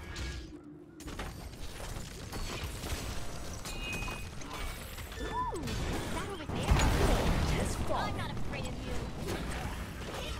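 Magic blasts and weapon impacts crackle and boom in a fast battle.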